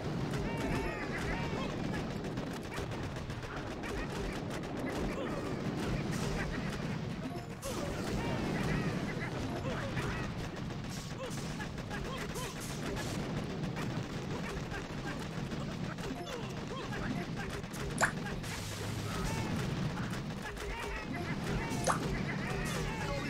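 Gunfire and explosions crackle and boom in a busy battle.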